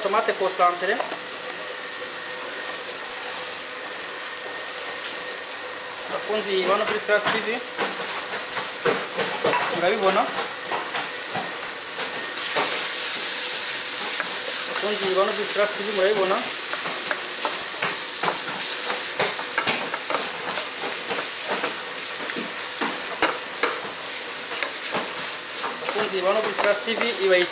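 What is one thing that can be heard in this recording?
Vegetables sizzle in a hot frying pan.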